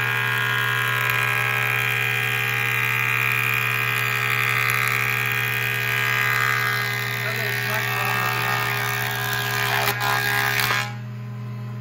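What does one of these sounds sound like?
A wood planer shaves a board with a loud, rushing whine.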